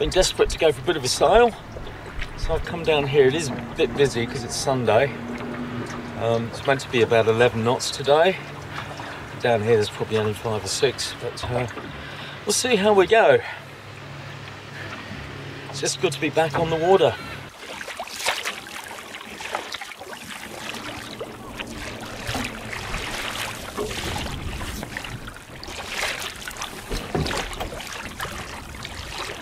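Water laps against a small boat's hull.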